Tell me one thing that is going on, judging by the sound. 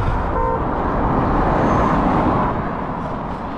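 A car passes by on the road.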